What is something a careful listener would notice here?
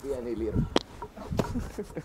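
A man laughs softly close by.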